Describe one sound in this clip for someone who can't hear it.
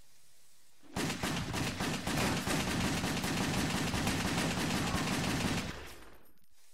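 Rapid gunshots fire in a burst.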